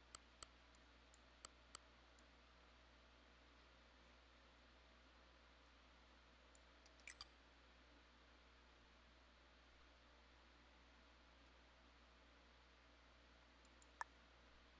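Short electronic clicks sound now and then.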